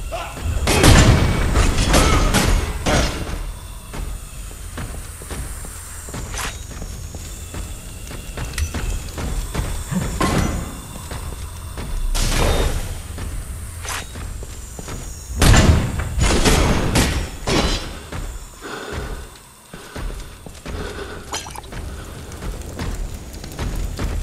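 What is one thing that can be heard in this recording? Heavy armoured footsteps clank on stone.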